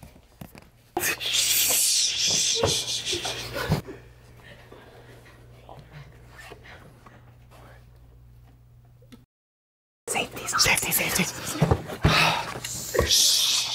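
A group of young men and women shout and laugh excitedly.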